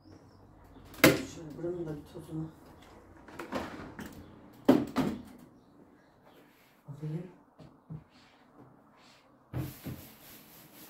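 Something thumps and clatters as a computer is moved on the floor.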